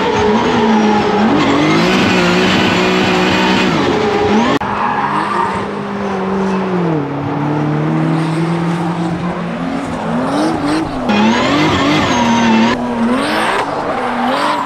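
A racing car engine roars loudly and revs up and down.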